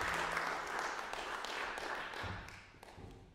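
A crowd applauds with steady clapping, then the applause fades.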